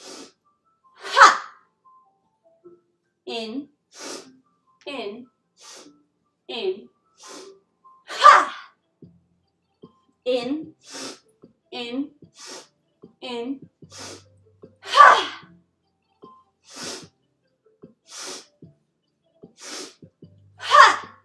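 A young woman breathes out loudly and forcefully.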